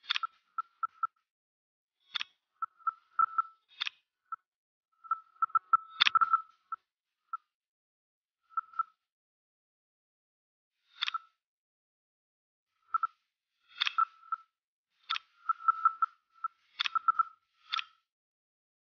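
Short electronic blips and clicks sound in quick bursts.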